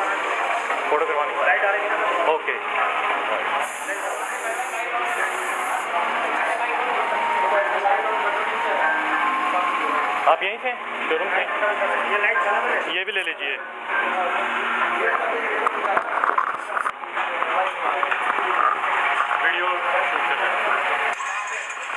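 A crowd of men talks and murmurs close by.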